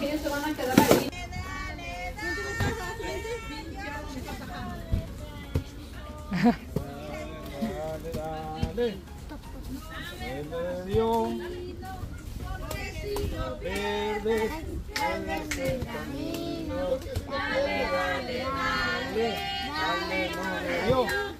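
Young children chatter and call out outdoors.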